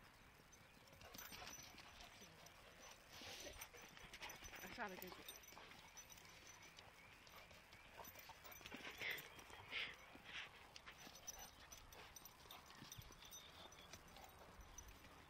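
Dogs growl and snarl as they play-fight.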